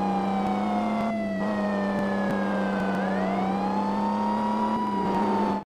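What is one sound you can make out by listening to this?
A car engine revs, its pitch dropping and then rising as it speeds up.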